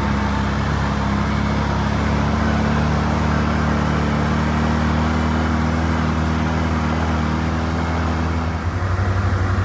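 An off-road vehicle's engine drones steadily close by.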